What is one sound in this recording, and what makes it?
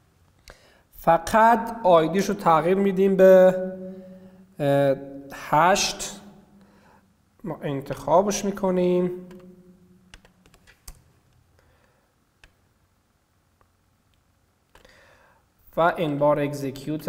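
A young man speaks calmly into a close microphone, pausing now and then.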